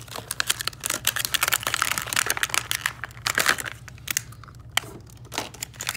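Plastic clicks and snaps as a blister pack is pried open.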